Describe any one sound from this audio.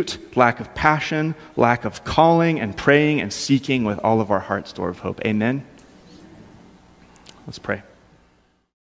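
A man speaks calmly through a microphone in a room with some echo.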